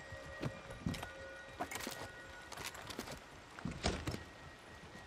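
A heavy plastic lid clunks and rattles open.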